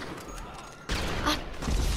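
A single gunshot rings out close by.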